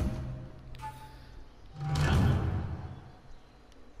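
A game menu chimes as points are added.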